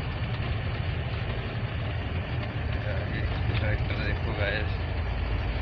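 A heavy vehicle's engine rumbles steadily while driving on a road.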